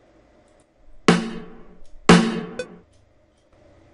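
A short percussive drum sample plays twice.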